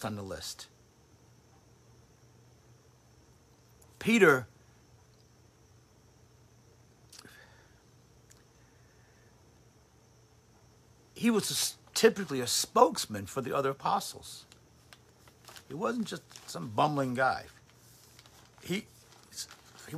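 A middle-aged man talks calmly and close by, with pauses.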